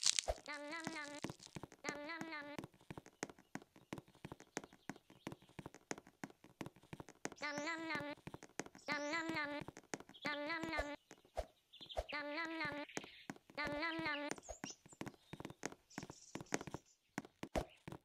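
Footsteps patter quickly on soft ground.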